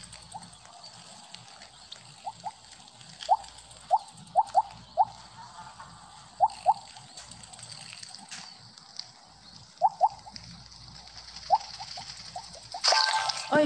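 Short bright blips ring out in quick pairs as a game snake eats.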